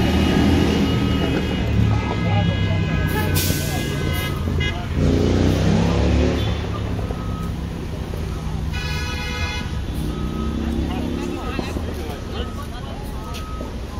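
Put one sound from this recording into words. A fire engine idles with a low, steady rumble.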